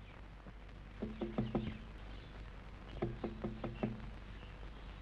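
Knuckles knock on a glass window pane.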